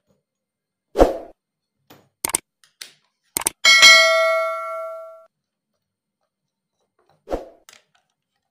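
Wooden clamps knock and scrape against a board.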